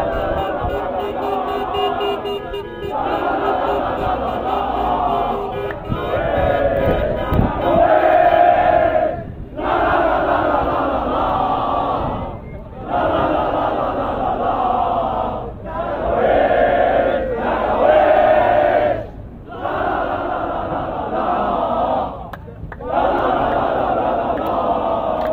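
A large crowd of young men chants loudly in unison outdoors.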